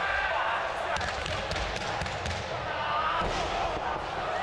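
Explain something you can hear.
Bodies thud onto a wrestling mat.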